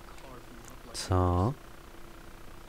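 An older man speaks in a low, quiet voice.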